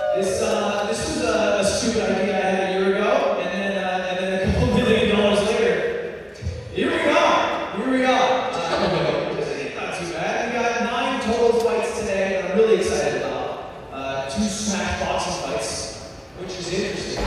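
A man talks in a large, echoing hall.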